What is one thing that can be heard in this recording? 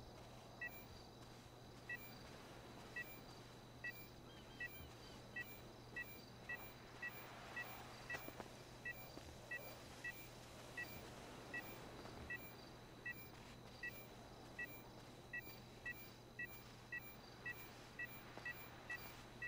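Footsteps crunch over rocky ground.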